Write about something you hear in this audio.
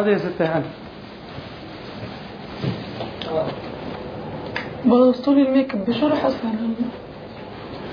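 Young women talk nearby with animation.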